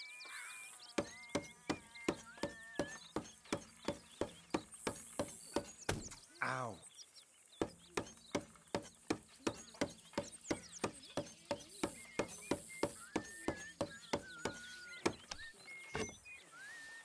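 A knife point taps rapidly and rhythmically on a wooden table.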